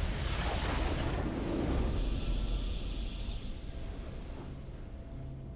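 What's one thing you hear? A triumphant game fanfare bursts out loudly and then fades away.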